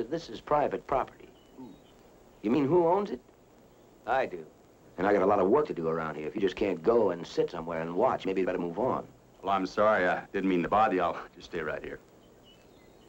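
An older man speaks in a gruff voice up close.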